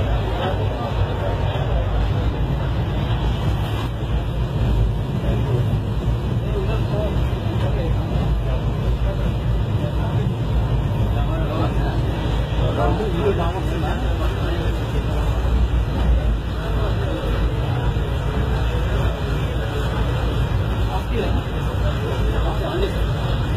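A passenger train rumbles along the tracks, heard from inside a coach.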